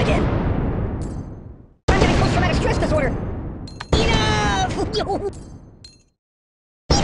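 Coins clink and jingle.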